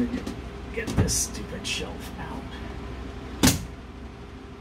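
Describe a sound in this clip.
A wooden panel knocks and thumps under pressure.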